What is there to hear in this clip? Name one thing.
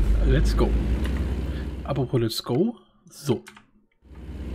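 A man talks through a microphone.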